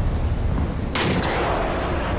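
A mortar fires with a loud boom.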